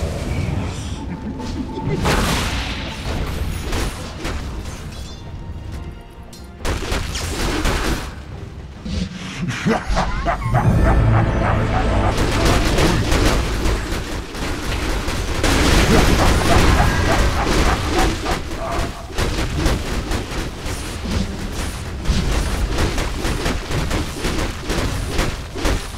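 Fantasy battle sound effects of clashing blows and crackling spells play in a game.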